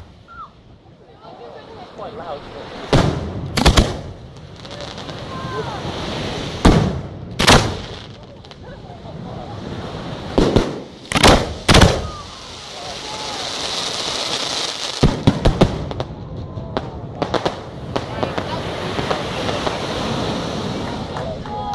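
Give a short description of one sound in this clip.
Fireworks crackle and fizz in rapid pops.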